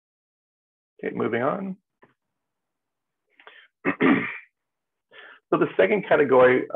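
An adult speaks calmly over an online call, in short bursts with pauses.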